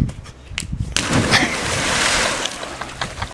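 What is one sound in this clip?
A body splashes into a swimming pool.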